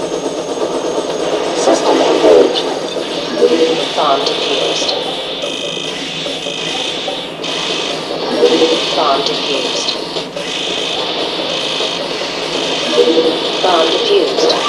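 A robot's machinery whirs with rising sweeps as it moves.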